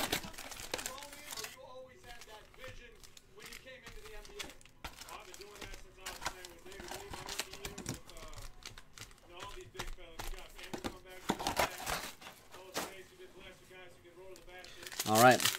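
Card packs rustle and tap as they are handled.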